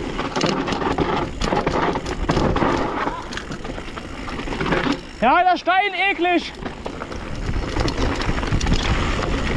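Bicycle tyres crunch and rumble over a rough dirt trail.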